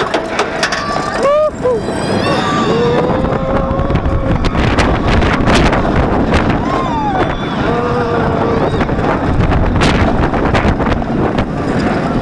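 Riders scream with excitement as a roller coaster drops.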